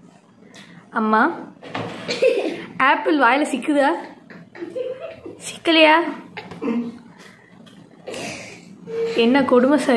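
A woman laughs and squeals close by.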